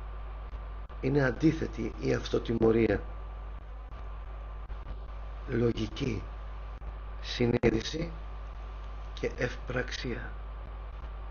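A middle-aged man speaks calmly in short phrases, heard through a microphone over an online call.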